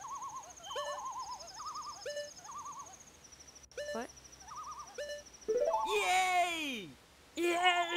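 Cheerful electronic game music plays with warbling tones and chimes.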